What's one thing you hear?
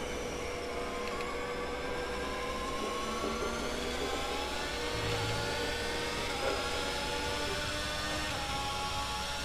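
A racing car engine screams as it accelerates through the gears.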